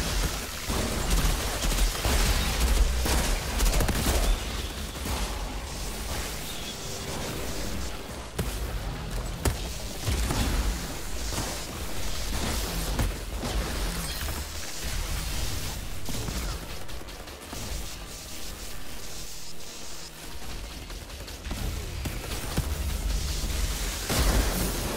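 Explosions boom with deep rumbles.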